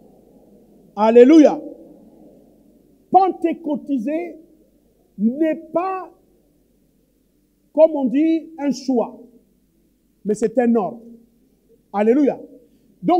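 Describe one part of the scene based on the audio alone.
A man preaches loudly and with passion through a microphone, in bursts.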